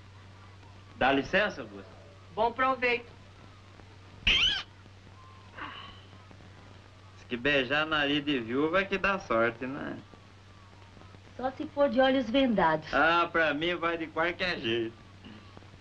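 A man talks with animation, heard through an old film soundtrack.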